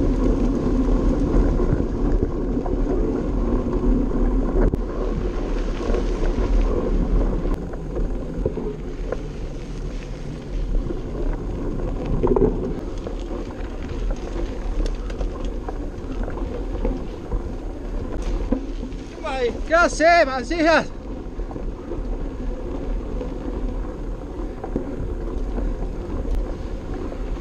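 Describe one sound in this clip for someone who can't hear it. Wind rumbles loudly past outdoors.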